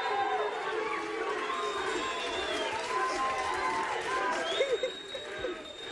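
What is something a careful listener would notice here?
A studio audience claps and cheers loudly.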